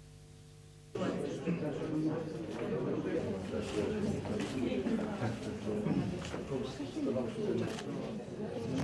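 A crowd of people murmur and chatter in a room.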